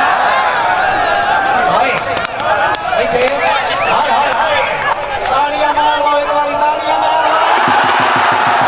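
A large outdoor crowd shouts and cheers excitedly.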